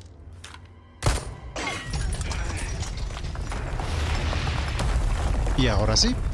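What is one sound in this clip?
Stone walls crumble and collapse with a deep rumble.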